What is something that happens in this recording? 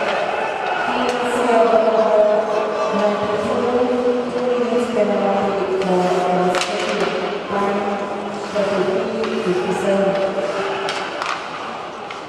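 A crowd of fans chants and sings loudly in a large echoing arena.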